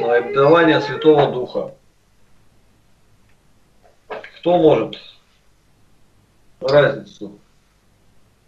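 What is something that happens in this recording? An elderly man speaks calmly in short phrases, heard through a microphone over an online call.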